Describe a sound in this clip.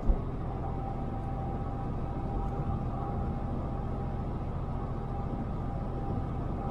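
Tyres roll on a smooth road with a low rumble.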